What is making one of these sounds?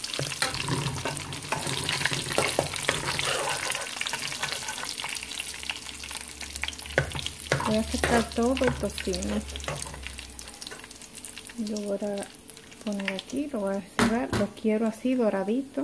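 Bacon sizzles and crackles in hot fat.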